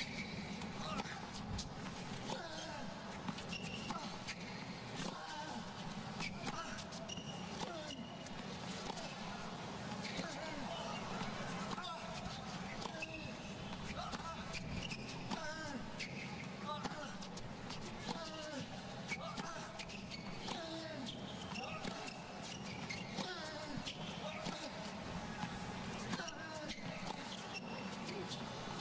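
Rackets strike a tennis ball back and forth in a long rally on a hard court.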